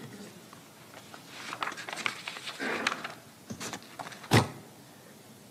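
Paper rustles and crinkles up close.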